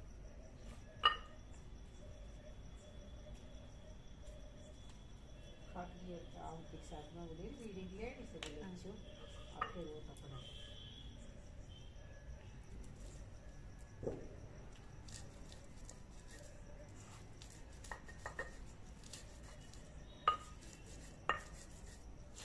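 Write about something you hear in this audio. Metal dishes clink and clatter.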